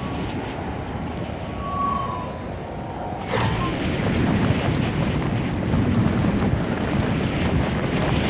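Wind rushes steadily past during a fast fall.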